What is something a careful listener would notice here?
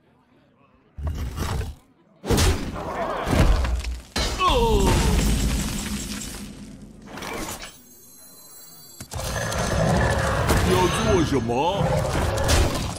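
Magical chimes and whooshes ring out in quick bursts.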